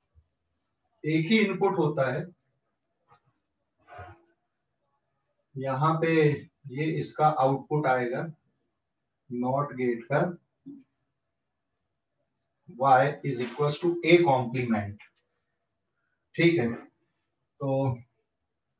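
A man explains calmly in short phrases, close by.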